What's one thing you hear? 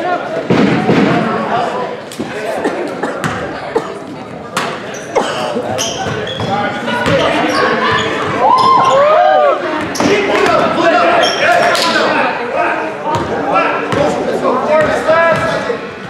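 A basketball thuds as it bounces on a wooden floor.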